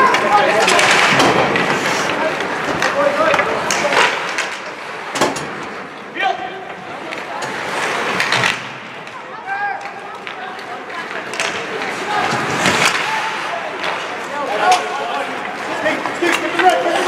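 Young male players shout across the ice.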